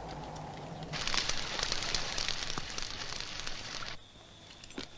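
A campfire crackles and hisses.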